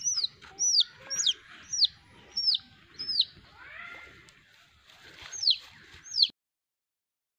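A chick peeps loudly and repeatedly.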